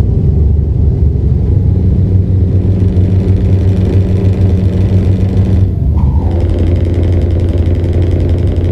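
Tyres roll over a highway.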